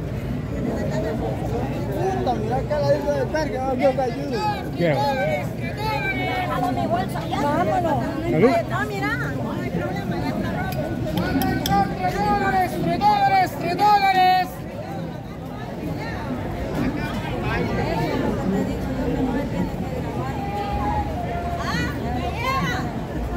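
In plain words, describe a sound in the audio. A crowd chatters outdoors nearby.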